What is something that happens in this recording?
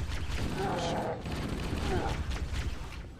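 An alien creature growls loudly up close.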